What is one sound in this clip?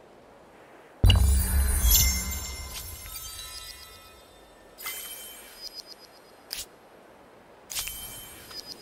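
A game sounds a bright fanfare as a notice pops up.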